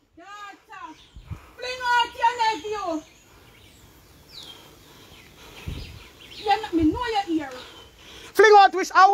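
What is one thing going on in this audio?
A woman talks loudly and excitedly close by.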